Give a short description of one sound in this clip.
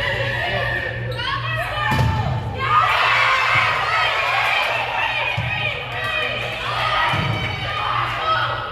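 Young women players shout and call to each other.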